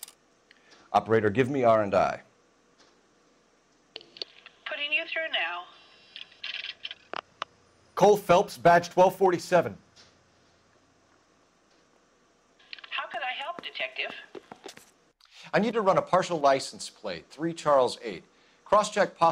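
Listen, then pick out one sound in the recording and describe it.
A man speaks calmly into a telephone, close by.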